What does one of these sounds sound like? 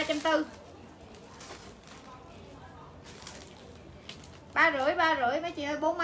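Plastic bags rustle as a young woman handles clothes.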